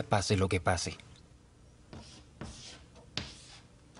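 Chalk scratches on a board.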